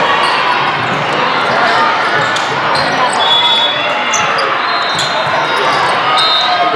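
A crowd chatters and cheers loudly in a large echoing hall.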